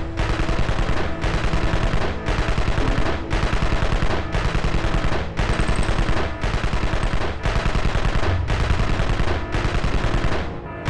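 Gunfire crackles in a battle.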